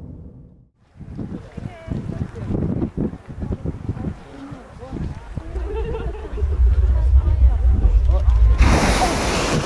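Hot water gurgles and bubbles in a pool outdoors.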